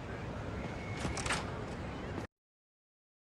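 A metal door creaks open.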